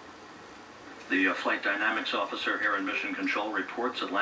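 A man speaks calmly over a loudspeaker.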